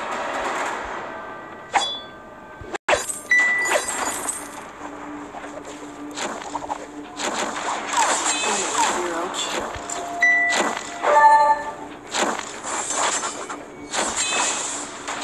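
Game laser shots and magic blasts crackle and zap in a battle.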